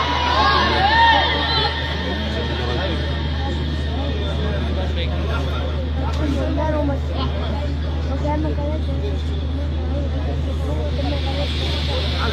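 A crowd murmurs and calls out in the background.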